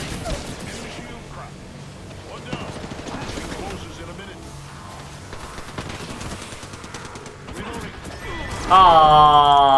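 A young man talks through a microphone.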